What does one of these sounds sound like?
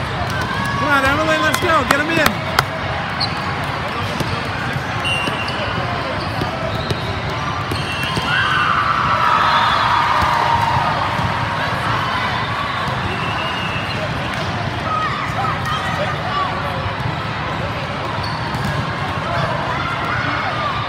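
Many voices chatter and call out across a large echoing hall.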